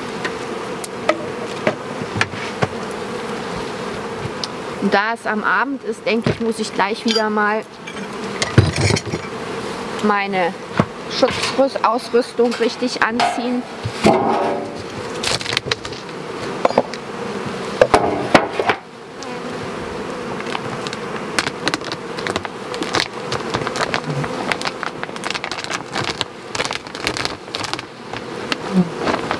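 Bees hum steadily around a hive.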